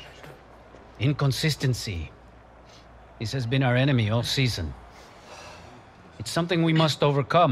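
A man speaks firmly and calmly.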